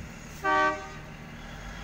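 A train horn blares briefly.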